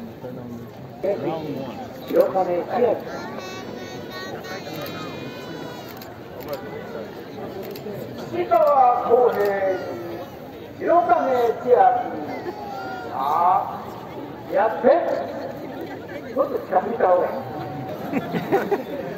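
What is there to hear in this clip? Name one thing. A man calls out loudly in a chanting voice outdoors.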